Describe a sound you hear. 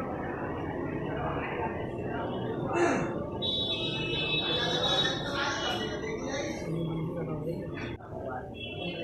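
A crowd of people murmurs outdoors.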